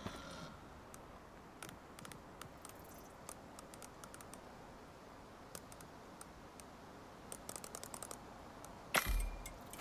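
Menu buttons click softly.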